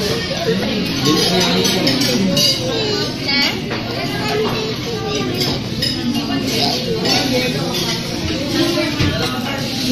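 A young child babbles.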